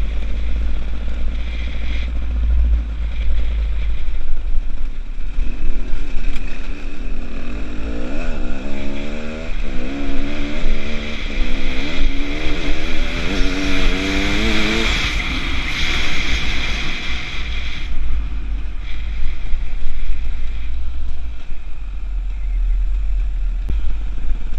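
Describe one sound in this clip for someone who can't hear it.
A two-stroke enduro motorcycle revs while riding along a gravel track.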